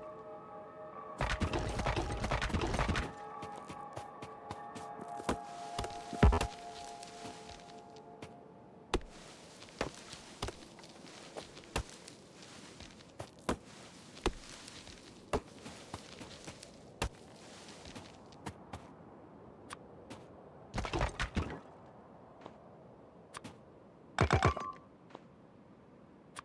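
Footsteps crunch on dry ground.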